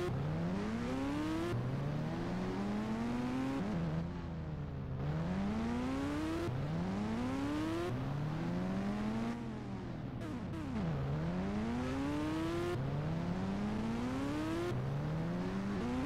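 A sport motorcycle engine revs up repeatedly through the gears.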